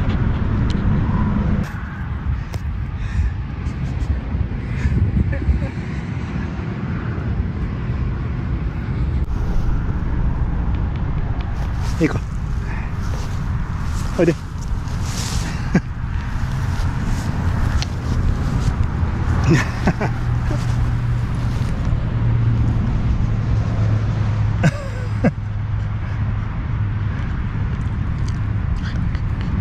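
A dog pants quickly close by.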